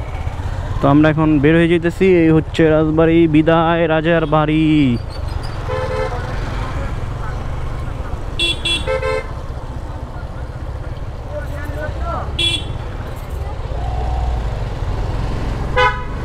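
A motorcycle engine rumbles steadily close by.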